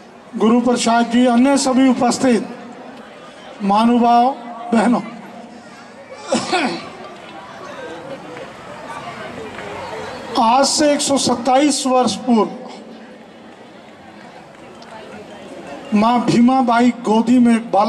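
An elderly man speaks forcefully into a microphone, heard through loudspeakers in bursts with pauses.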